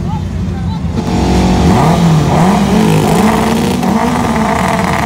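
A race car engine revs loudly up and down.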